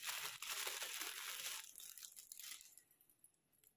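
Plastic wrapping crinkles as it is torn open.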